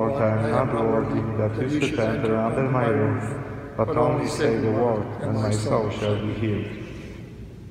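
A man chants loudly through a microphone in a large echoing hall.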